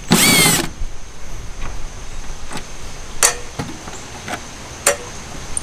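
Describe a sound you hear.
A plastic bulb socket clicks as it is twisted out of a tail light housing.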